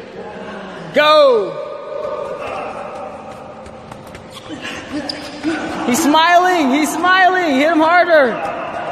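A young man cries out and laughs loudly nearby.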